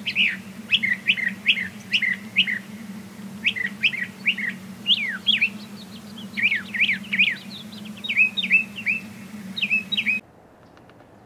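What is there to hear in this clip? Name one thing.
A bird sings a loud, varied song of quick repeated whistles and chirps.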